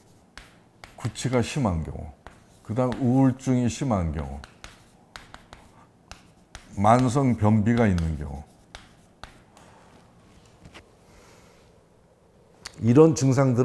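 A man speaks with emphasis, close by.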